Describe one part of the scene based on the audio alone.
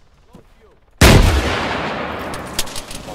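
A rocket fires with a loud, sudden blast that rumbles and fades.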